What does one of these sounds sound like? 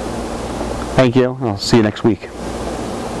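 A middle-aged man speaks briefly and calmly into a close microphone.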